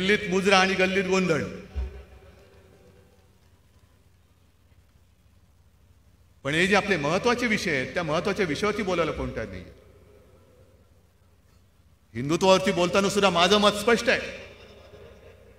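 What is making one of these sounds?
A middle-aged man speaks forcefully into a microphone over loudspeakers, pausing between phrases.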